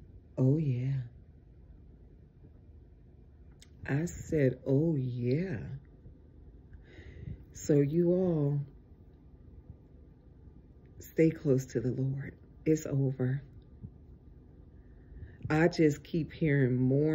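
A woman talks close by, with pauses between her phrases.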